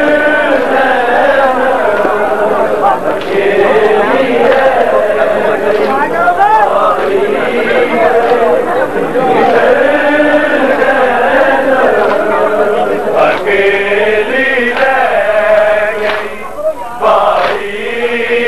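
A large crowd of men chants and wails loudly nearby.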